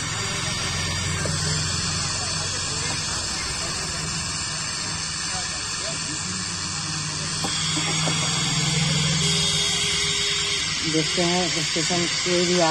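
A small loudspeaker plays a tinny, crackling sound.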